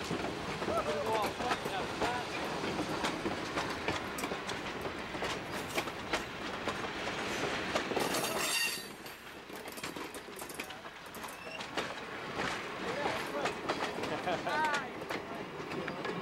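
A train of passenger coaches rolls by close by, its steel wheels rumbling.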